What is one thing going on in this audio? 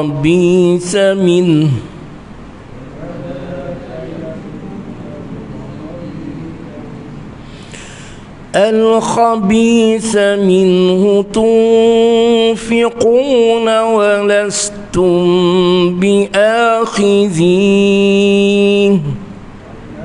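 A man chants melodically and loudly into a close microphone.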